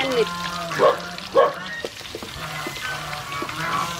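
Raw meat tumbles into a wok with a wet thud.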